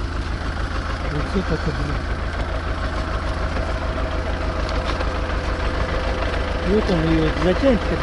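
A tractor engine idles with a steady, low throbbing rumble.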